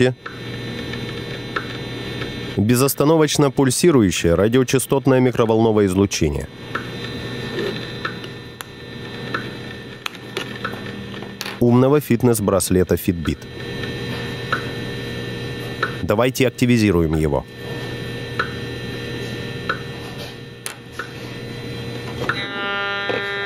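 An electronic meter crackles with a steady buzzing static and faint regular ticks.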